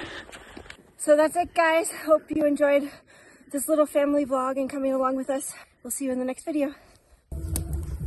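A young woman talks calmly close up.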